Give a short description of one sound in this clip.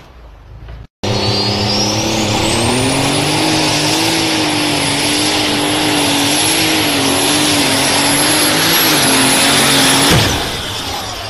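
A tractor engine roars loudly at full power.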